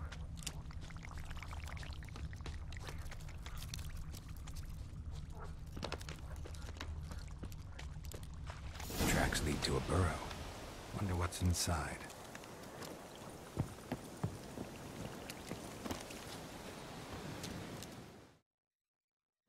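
Footsteps rustle through dry undergrowth.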